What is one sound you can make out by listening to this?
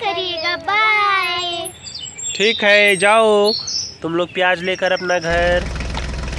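Another young girl speaks cheerfully close by.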